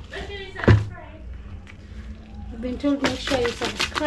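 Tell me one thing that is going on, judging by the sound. A wooden stick stirs and scrapes inside a plastic bucket.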